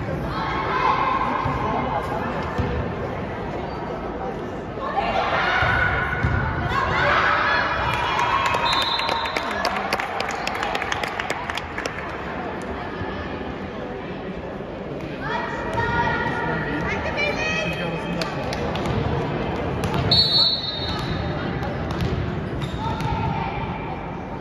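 Young girls shout and cheer in an echoing hall.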